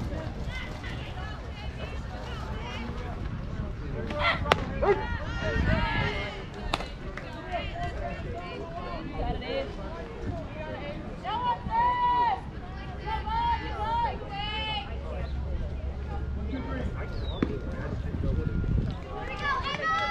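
Young players call out and cheer from across an open field.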